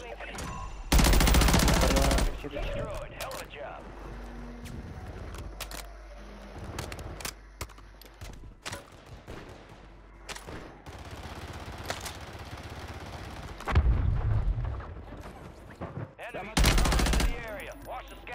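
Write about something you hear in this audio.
Gunfire rattles in rapid loud bursts.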